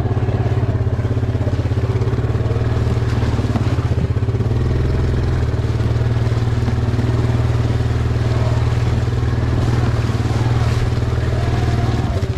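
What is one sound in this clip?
A small engine putters steadily and loudly close by.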